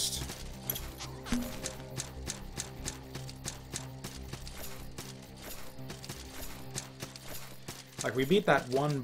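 Calm, drawn-out game music plays.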